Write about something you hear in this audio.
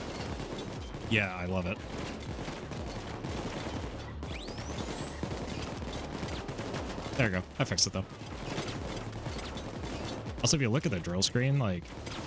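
A man talks into a microphone with animation.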